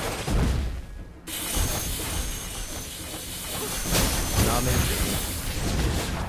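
Game spell effects whoosh and crackle in rapid bursts.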